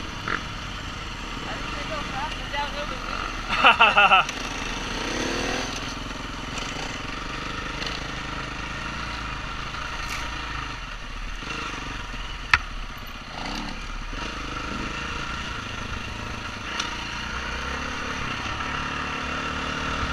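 A dirt bike engine drones steadily close by.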